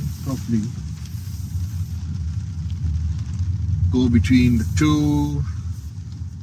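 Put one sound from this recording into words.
A car's cabin hums with a low, steady road rumble.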